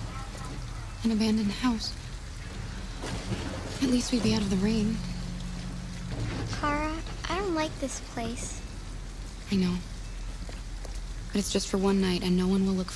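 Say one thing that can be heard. A young woman speaks softly and calmly.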